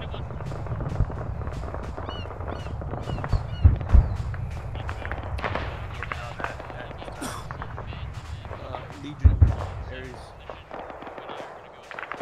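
Rifle shots crack repeatedly in the open.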